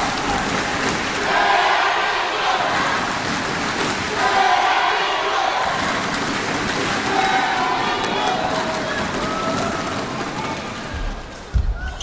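A large crowd chants in rhythm.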